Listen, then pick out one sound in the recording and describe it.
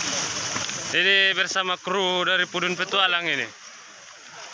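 A man calls out loudly nearby.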